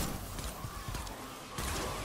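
A gun fires in quick shots.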